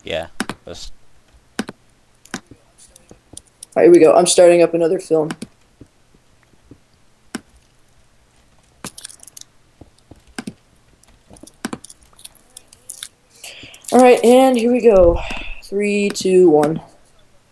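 A pickaxe taps and chips at stone in short, repeated knocks.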